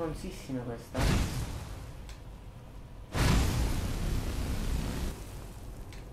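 A fire spell roars in loud bursts.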